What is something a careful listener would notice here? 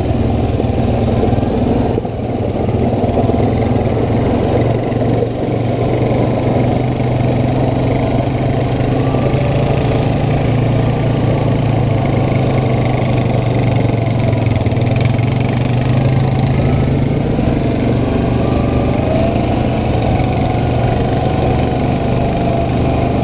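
A second quad bike engine hums a little way ahead.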